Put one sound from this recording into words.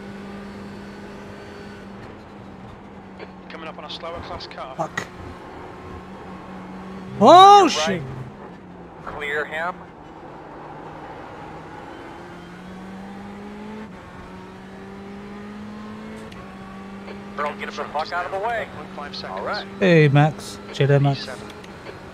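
A racing car engine drones and rises and falls in pitch as it shifts gears.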